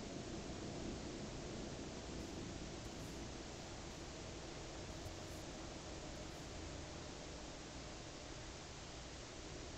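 A truck engine rumbles steadily while driving slowly.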